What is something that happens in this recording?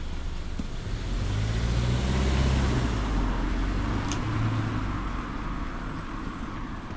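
A car drives slowly along the street nearby, its engine humming.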